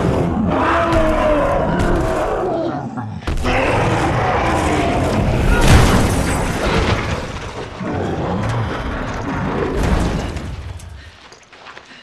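Heavy blows and crashes thud as creatures wrestle.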